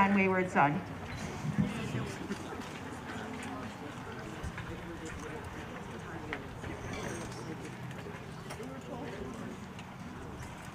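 A woman speaks to a band at a distance, outdoors.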